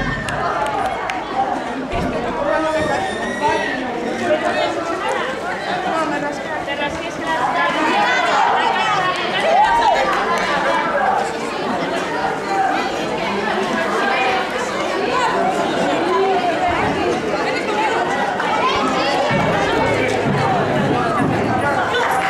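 Young girls' voices cheer and shout excitedly.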